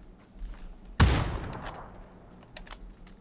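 A rifle shot cracks loudly and echoes away.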